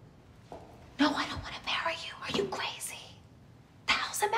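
A young woman speaks agitatedly into a phone close by.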